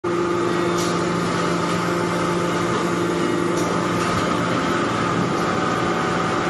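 A hydraulic press hums steadily.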